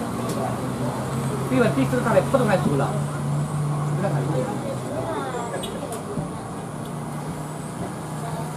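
A car engine hums as a car drives slowly past close by.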